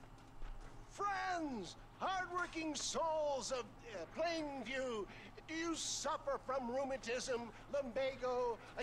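A man shouts with animation, like a showman addressing a crowd.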